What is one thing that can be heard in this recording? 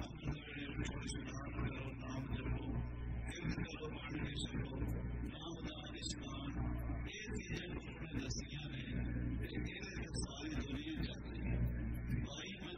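An elderly man speaks calmly and steadily through a microphone.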